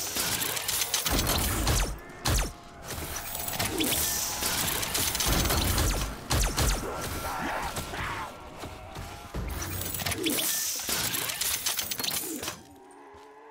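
Guns fire in rapid loud bursts.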